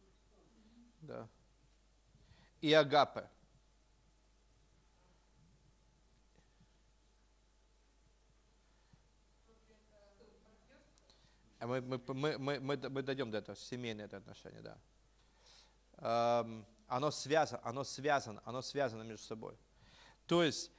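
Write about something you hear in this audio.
A man speaks into a microphone with long pauses, in a calm preaching manner.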